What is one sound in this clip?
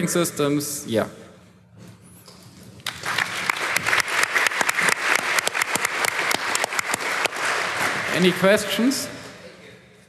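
A young man speaks into a microphone in a large hall.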